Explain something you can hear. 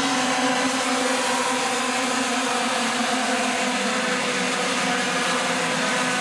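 Kart engines buzz loudly as a pack of go-karts races past.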